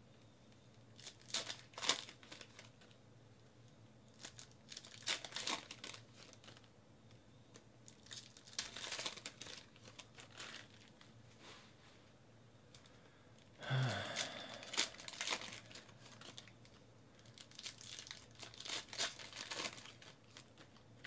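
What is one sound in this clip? Trading cards shuffle and slap together in hands.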